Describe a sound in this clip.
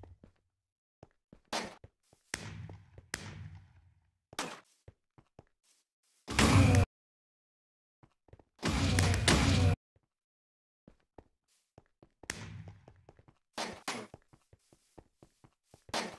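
Footsteps tap quickly on stone.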